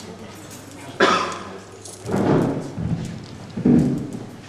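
A middle-aged man speaks through a microphone in a hall with echo.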